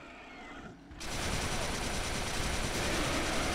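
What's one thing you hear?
A heavy gun fires in a loud, continuous roar.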